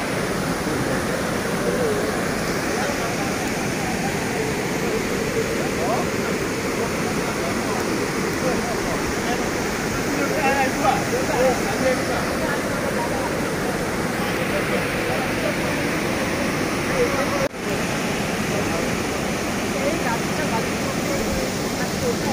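Floodwater rushes and roars loudly over a broken embankment.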